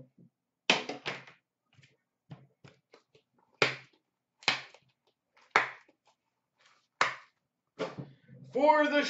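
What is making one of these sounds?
A small box clicks sharply against a hard surface several times.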